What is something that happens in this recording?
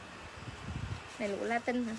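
Fabric rustles in a young woman's hands.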